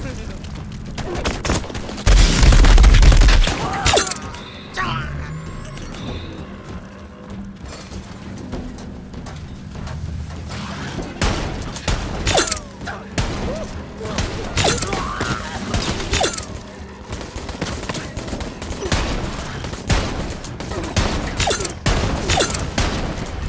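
Gunshots crack and explosions boom in quick bursts.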